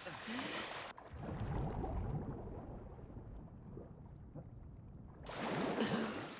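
Muffled underwater bubbling and movement.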